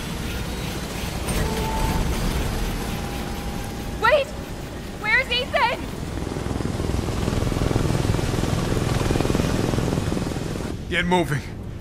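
An aircraft's rotors roar with a deep, steady drone.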